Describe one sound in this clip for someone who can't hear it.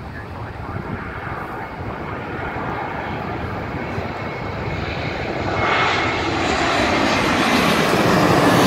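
A jet airliner roars low overhead, growing louder.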